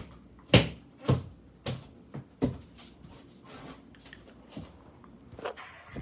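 A hand knocks and fumbles against a phone close by.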